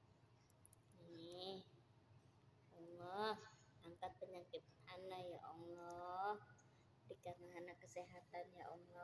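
A young woman speaks softly in a sing-song voice close by.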